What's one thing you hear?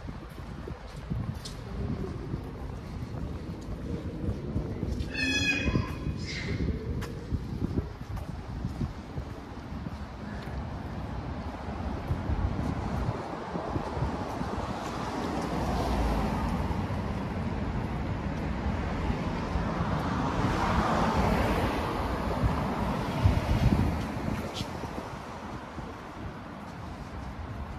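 Outdoors, a light wind blows with distant city traffic.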